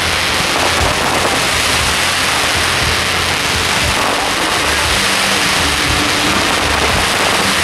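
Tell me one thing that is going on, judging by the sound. Fireworks crackle and hiss loudly and steadily.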